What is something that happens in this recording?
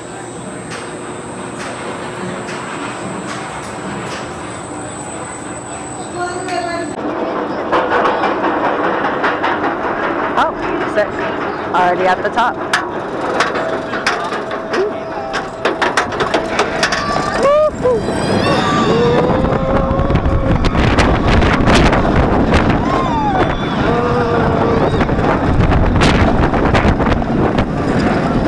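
A roller coaster train clatters and rumbles along its track.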